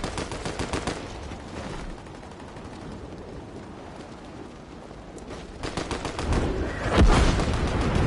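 Wind rushes past steadily during a glide through the air.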